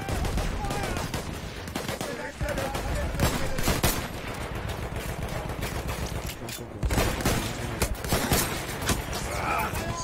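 A rifle fires close by.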